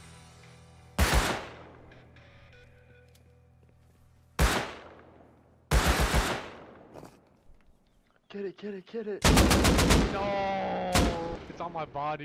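Rifle shots crack loudly, each one followed by a rolling echo.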